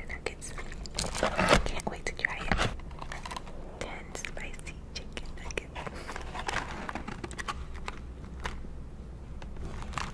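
A cardboard box rustles and taps as it is handled.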